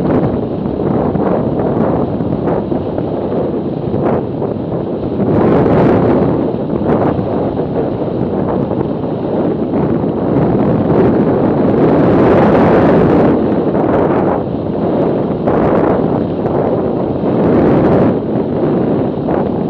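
Strong wind buffets loudly past a moving motorcycle, rising and falling in gusts.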